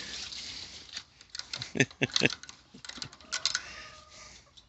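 A metal gate latch clicks and rattles.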